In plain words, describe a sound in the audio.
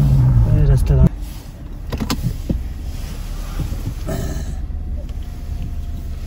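A truck engine rumbles as it approaches.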